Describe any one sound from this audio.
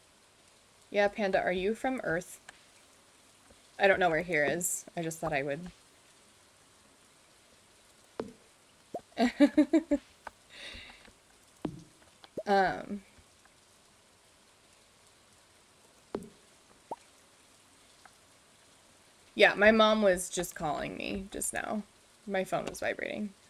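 A young woman talks casually and close to a microphone, in short bursts.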